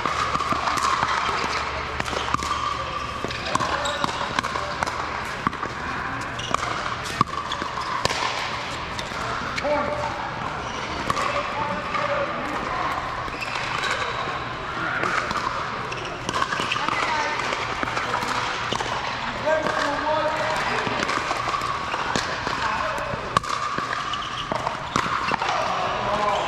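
Paddles hit a plastic ball with sharp pops that echo in a large hall.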